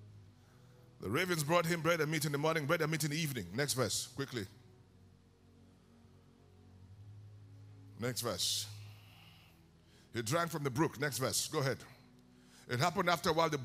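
A man preaches with animation into a microphone, his voice carried through loudspeakers in a large hall.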